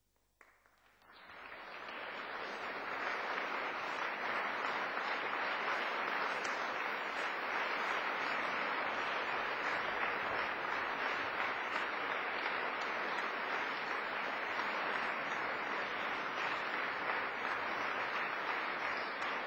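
An audience applauds loudly and steadily in a large echoing hall.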